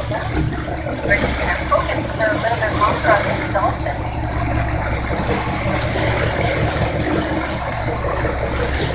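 Waves splash and slosh against a boat's hull.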